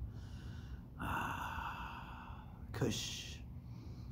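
A young man exhales smoke close to the microphone.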